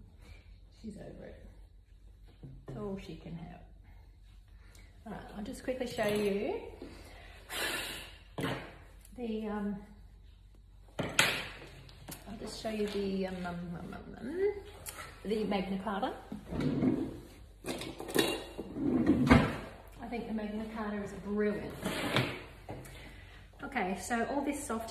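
An older woman talks calmly, close by.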